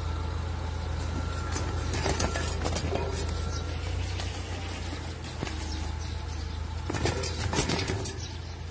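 An animal's claws scrape and scratch against a wooden fence.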